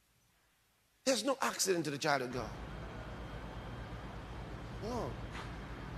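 A man preaches with animation through a microphone.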